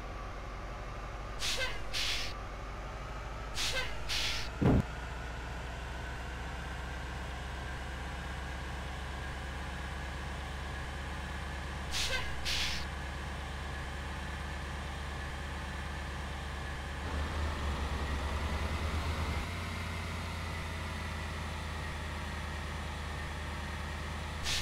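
A bus engine hums steadily as the bus climbs a winding road.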